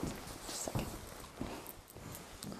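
Fabric of a padded jacket rustles close by.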